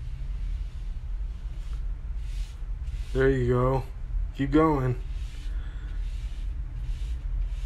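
A paintbrush swishes in short strokes against a wall.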